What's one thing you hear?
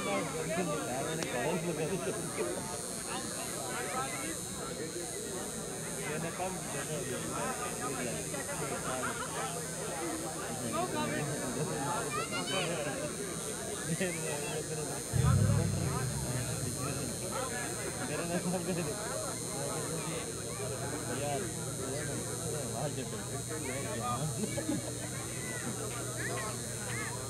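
Several men talk and call out nearby outdoors.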